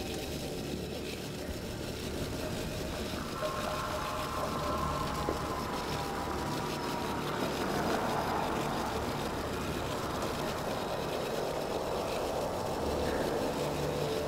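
A spaceship engine hums and roars steadily.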